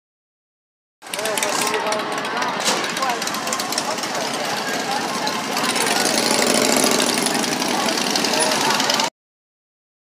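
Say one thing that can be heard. Motorcycle engines rumble loudly as they pass by close.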